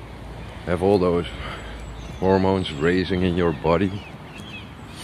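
A middle-aged man speaks close to the microphone in short bursts.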